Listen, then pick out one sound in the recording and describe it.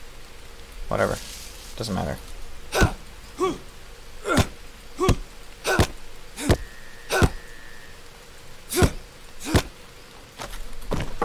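Footsteps crunch through dense undergrowth at a steady walking pace.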